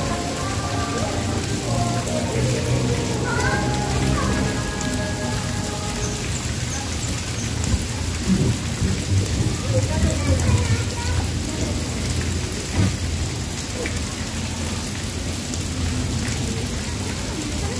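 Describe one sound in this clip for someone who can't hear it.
A man wades and splashes through shallow water.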